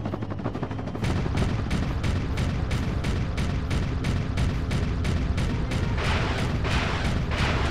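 A turret cannon fires in a rapid stream of blasts.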